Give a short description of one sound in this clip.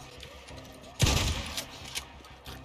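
A shotgun fires a single loud blast.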